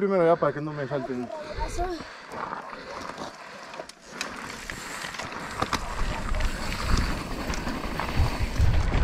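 Bicycle tyres crunch and rumble over a bumpy dirt trail.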